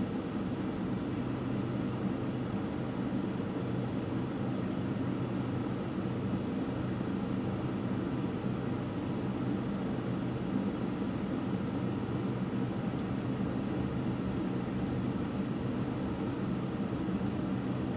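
A car engine idles steadily, heard from inside the car.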